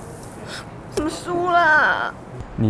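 A young woman speaks with a sigh of exasperation, close by.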